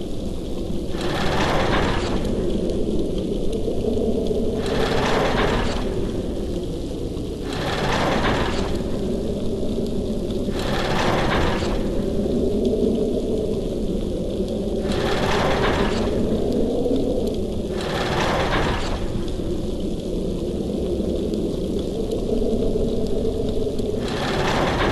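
Stone blocks grind and rumble as they turn, again and again.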